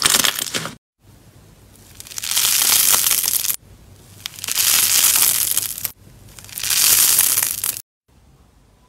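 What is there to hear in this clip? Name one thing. Crunchy slime crackles and crinkles as fingers stretch it apart.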